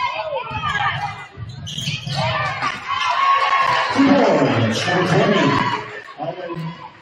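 A crowd cheers and shouts in a large echoing gym.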